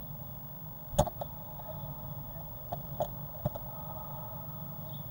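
A blue tit's claws scratch at a nest box entrance hole.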